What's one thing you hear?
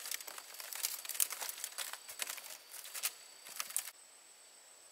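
Bare feet step on woven bamboo strips that creak and crackle.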